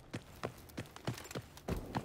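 A rifle fires a single loud shot.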